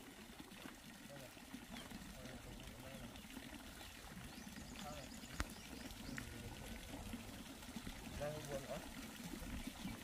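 A man talks outdoors at a distance.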